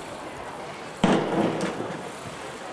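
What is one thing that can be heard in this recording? A diver splashes into the water.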